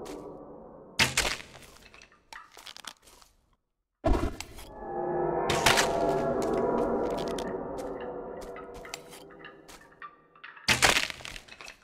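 A crossbow fires with a sharp snap.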